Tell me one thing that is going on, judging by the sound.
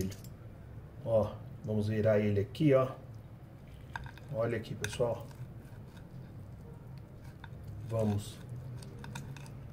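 A knife scrapes lightly against a plate while cutting roast meat.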